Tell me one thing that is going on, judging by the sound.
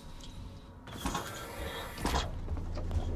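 A heavy metal door slides open with a hiss.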